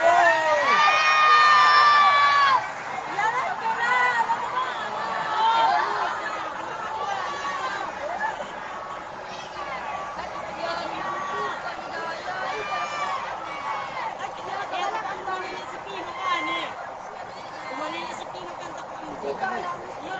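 A crowd of people shout and talk excitedly outdoors.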